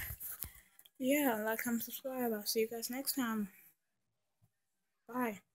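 A girl speaks close to the microphone with animation.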